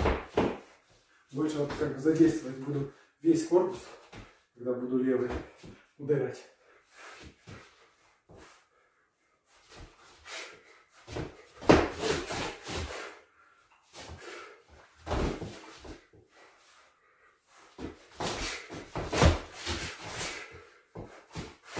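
Gloved fists thump a hanging ball in quick bursts.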